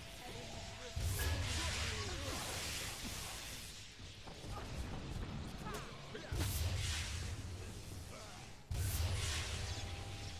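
Magic blasts crackle and boom in loud bursts.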